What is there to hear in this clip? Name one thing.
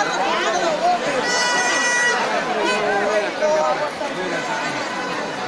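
A large crowd of men and women shouts and chatters loudly outdoors.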